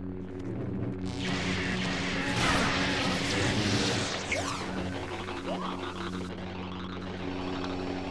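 Lightsabers clash and crackle in a duel.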